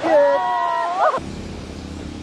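A waterfall rushes and splashes nearby.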